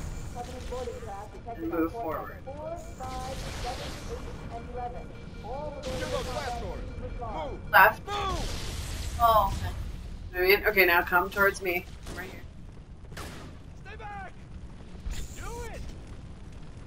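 A young man talks with animation, heard through a microphone.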